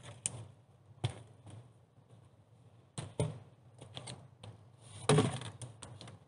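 A log knocks against a wooden rack.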